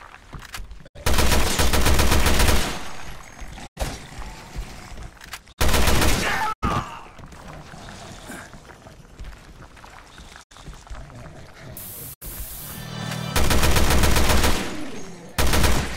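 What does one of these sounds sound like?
Loud gunshots fire in rapid bursts.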